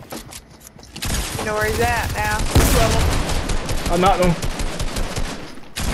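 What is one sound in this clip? Shotgun blasts go off in quick bursts.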